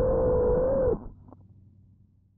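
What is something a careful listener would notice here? A drone thuds into grass and its motors cut out.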